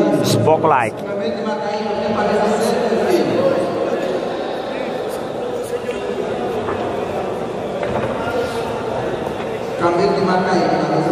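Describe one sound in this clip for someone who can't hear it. A crowd of men and women chatters and murmurs nearby throughout.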